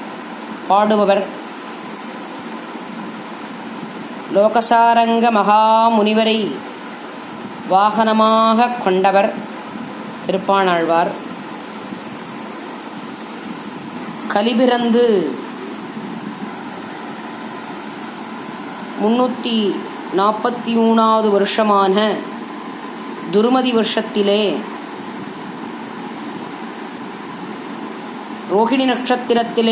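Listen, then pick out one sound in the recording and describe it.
A woman speaks close to a phone microphone in short, lively phrases with pauses.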